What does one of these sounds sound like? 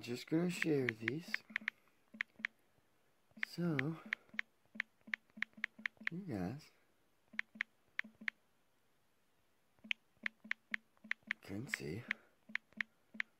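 Phone keyboard clicks tick quickly.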